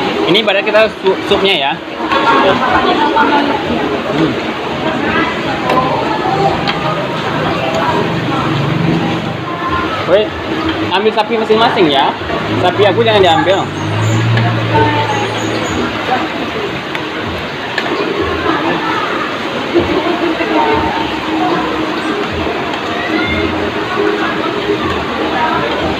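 Spoons and forks clink against plates.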